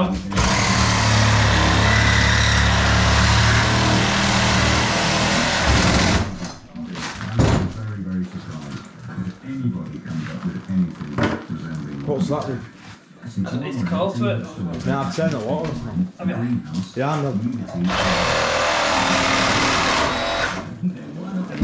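A power tool whirs loudly and steadily.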